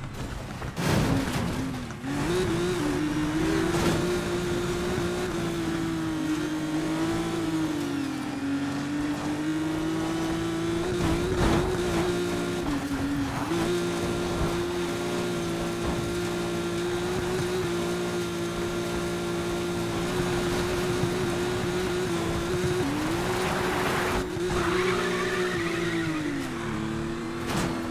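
A racing car engine roars and revs hard.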